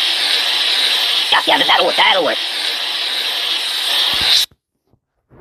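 A spray hisses onto a rag doll.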